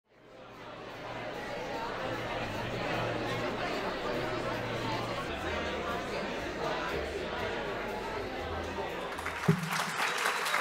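A crowd of men and women chatters in a large room.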